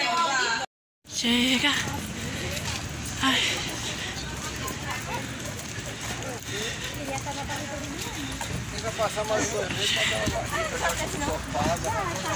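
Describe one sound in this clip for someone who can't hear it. Young women chat nearby while walking outdoors.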